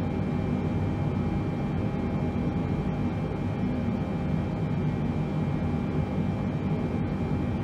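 Aircraft engines hum and rumble steadily.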